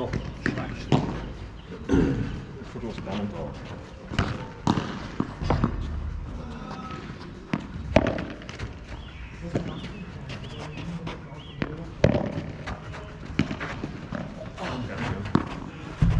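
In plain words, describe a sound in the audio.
A ball bounces on the court.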